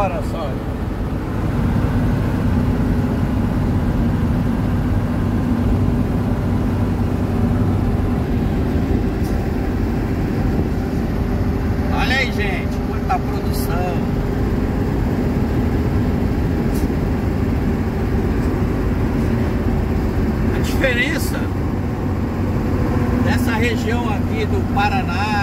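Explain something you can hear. A vehicle engine drones steadily from inside the cab.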